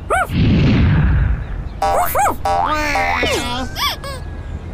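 A cartoon cat meows.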